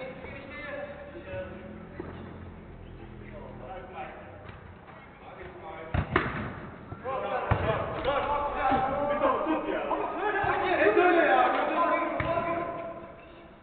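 Several men shout to each other in a large, echoing hall.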